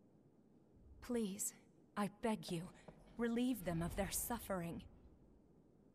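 A young woman speaks softly and pleadingly.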